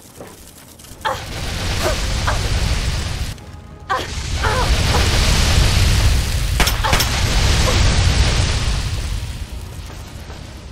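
Loud explosions boom and roar, then die away.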